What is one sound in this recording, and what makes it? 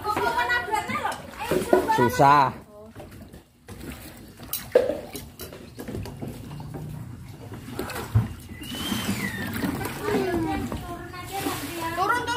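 A woman talks close by in a lively, playful voice.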